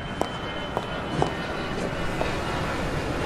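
Footsteps click on pavement at a steady walking pace.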